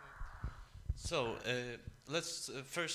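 An older man speaks into a microphone.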